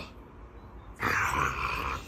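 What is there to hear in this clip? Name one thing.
A small dog growls and yaps.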